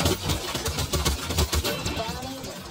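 Rapid video game gunfire crackles and booms.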